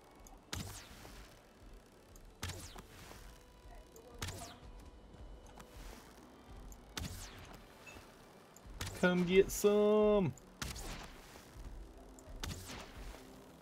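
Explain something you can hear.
A bow fires arrows with sharp twangs, again and again.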